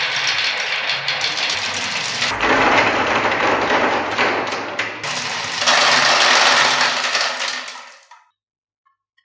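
Many glass marbles roll and rattle down bumpy tracks.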